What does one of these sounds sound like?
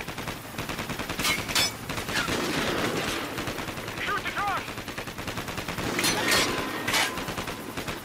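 An armoured vehicle's engine rumbles as it drives.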